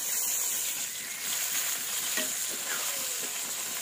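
A metal ladle scrapes and clinks against a pan.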